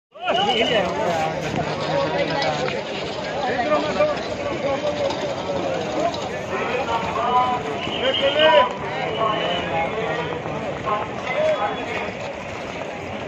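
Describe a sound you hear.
A large crowd of men and women chatter all around outdoors.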